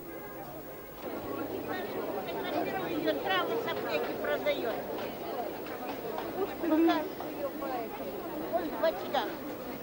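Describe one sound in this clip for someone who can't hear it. A crowd of people chatter nearby outdoors.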